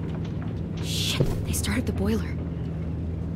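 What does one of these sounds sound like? A young girl whispers tensely up close.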